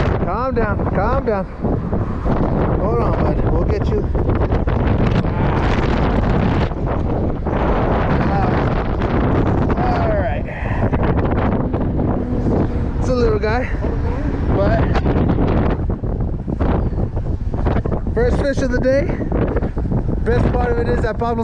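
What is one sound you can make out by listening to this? Wind blows hard and buffets outdoors.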